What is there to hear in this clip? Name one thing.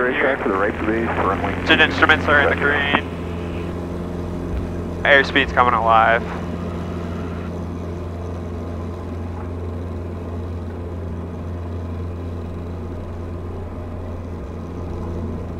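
A propeller engine drones steadily close by.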